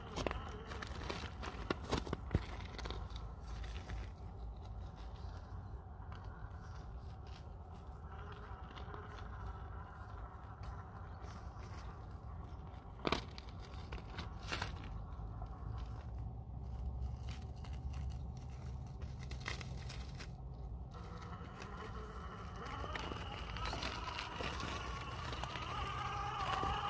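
Plastic tyres scrape and crunch on rock and loose dirt.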